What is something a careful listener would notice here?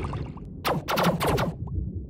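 A laser beam buzzes as it cuts into rock.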